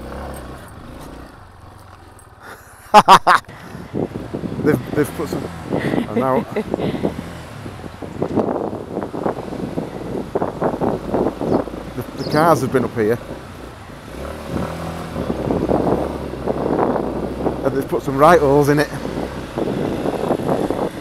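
A dirt bike engine revs and roars on a sandy track.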